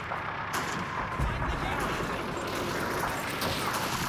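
A shell explodes nearby.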